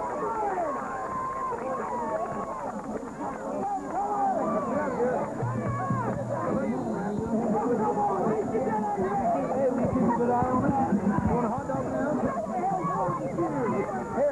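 A large crowd of people talks and cheers outdoors.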